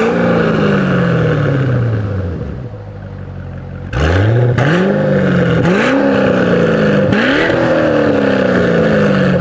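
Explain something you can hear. A car engine revs up loudly several times, its exhaust roaring close by and dropping back between revs.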